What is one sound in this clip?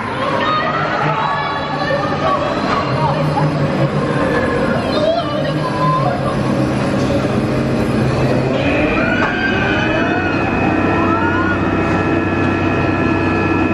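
A roller coaster train rumbles and clatters along its track.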